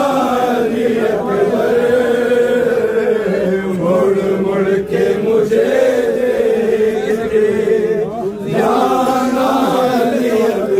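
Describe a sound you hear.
A crowd of men chants loudly together in a rhythmic lament.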